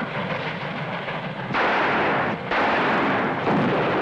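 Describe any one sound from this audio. A revolver fires gunshots.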